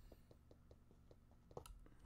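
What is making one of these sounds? A pickaxe taps repeatedly against stone blocks.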